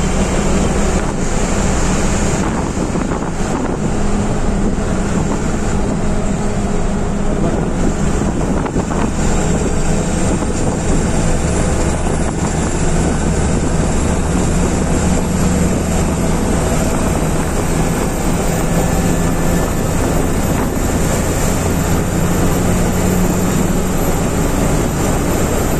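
A bus rattles and rumbles over the road.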